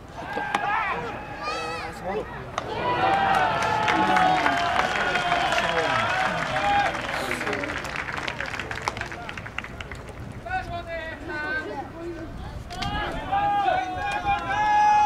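A crowd cheers and chants loudly in a stadium.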